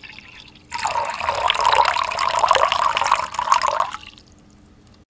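Water pours and splashes from a bottle.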